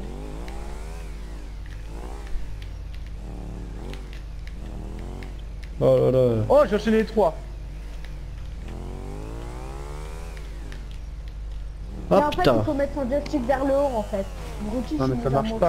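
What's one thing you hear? A motorcycle engine revs up and down over and over.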